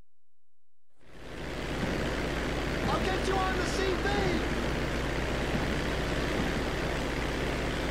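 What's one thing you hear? A small propeller plane's engine idles with a steady drone.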